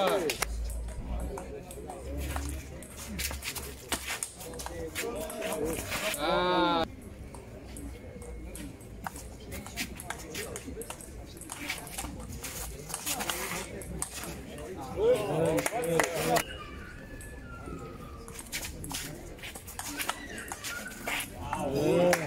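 A ping pong ball clicks back and forth on a hard table and paddles.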